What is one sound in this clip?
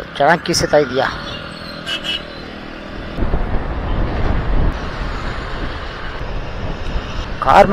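A scooter engine hums steadily while riding.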